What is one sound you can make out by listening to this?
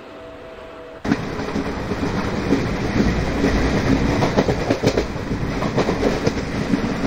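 Train wheels rumble and rattle loudly over the rails, heard from inside a carriage.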